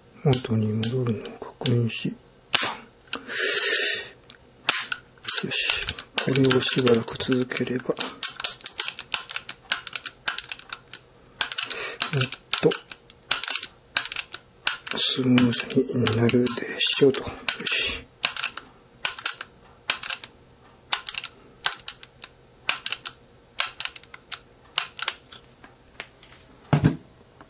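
Metal parts click and rattle against each other as they are handled.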